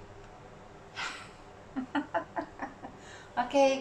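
A toddler laughs and babbles.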